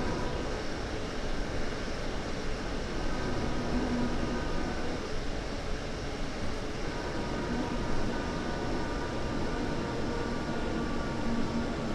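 An electric train motor hums and whines steadily.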